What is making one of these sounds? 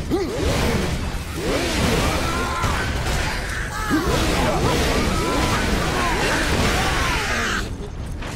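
Creatures screech and howl in pain.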